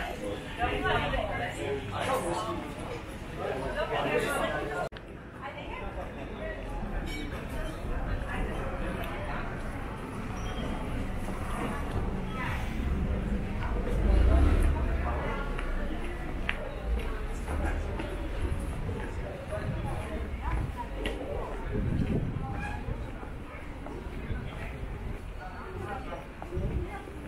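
Men and women passing by talk and chatter nearby outdoors.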